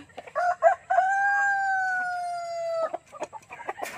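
A rooster crows loudly.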